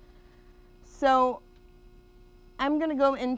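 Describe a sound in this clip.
A woman speaks in short bursts.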